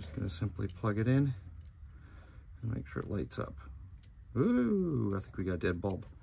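Metal parts click and clink under a car's hood.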